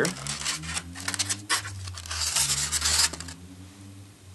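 Styrofoam packaging rustles and squeaks as it is handled.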